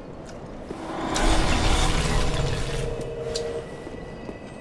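A magic spell whooshes and crackles loudly.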